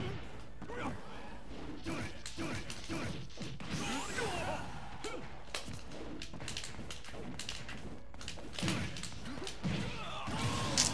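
Video game punches, hits and whooshes sound in quick bursts.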